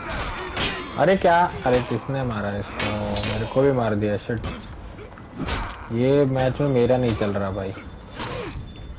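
Warriors grunt and yell as they fight.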